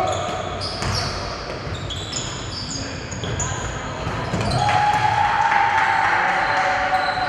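Spectators murmur and cheer loudly.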